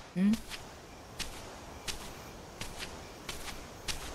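Sandals scuff and tap on stone as a man walks.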